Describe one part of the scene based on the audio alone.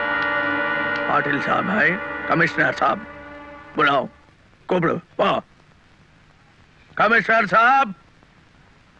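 A man speaks sharply at close range.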